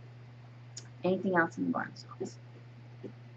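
A woman speaks a few words briefly, close by, through a computer microphone.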